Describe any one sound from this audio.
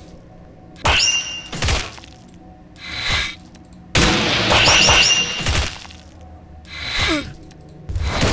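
Swords clang against armour in a fight.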